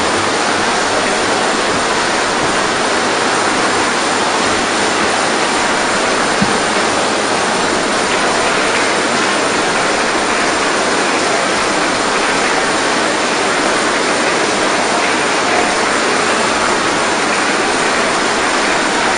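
A large crowd murmurs and cheers loudly in a vast echoing hall.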